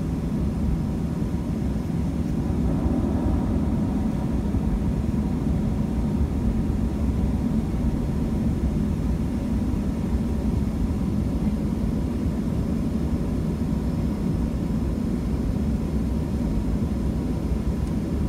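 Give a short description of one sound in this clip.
Jet engines rumble steadily inside an airplane cabin.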